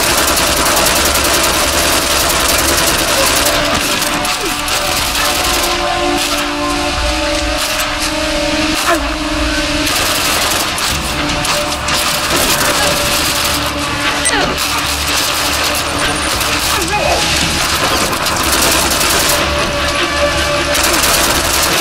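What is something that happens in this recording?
Gunfire rattles in rapid bursts, loud and close.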